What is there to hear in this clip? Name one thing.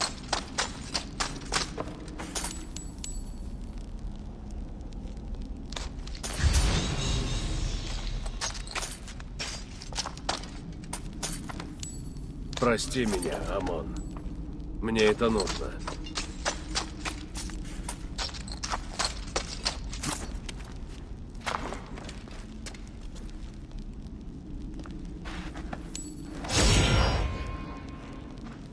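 Footsteps crunch over loose metal objects.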